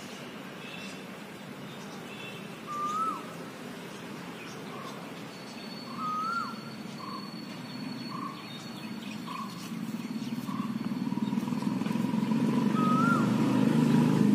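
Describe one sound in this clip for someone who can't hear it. Leaves rustle softly as a hand brushes through them.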